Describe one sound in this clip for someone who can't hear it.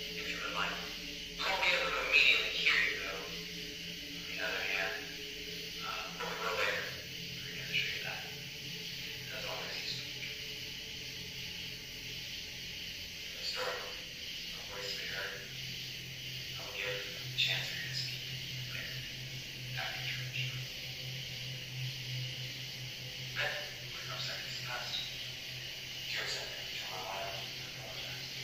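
A man talks quietly on a phone, close by.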